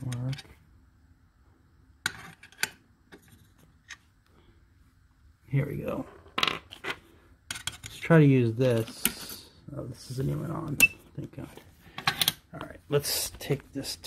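Small plastic parts click and rattle as a hand handles them.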